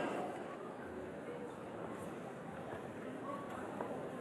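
An audience murmurs softly in a large hall.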